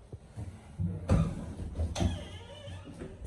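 An elevator's swing door is pushed open with a clunk.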